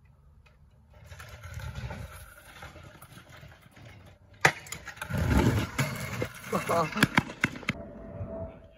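Scooter wheels rumble and grind over rough ground.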